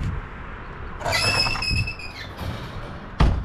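A wooden ramp scrapes and clatters as it is lifted into a trailer.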